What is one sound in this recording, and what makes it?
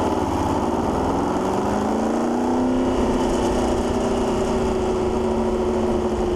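A racing car accelerates away down a track.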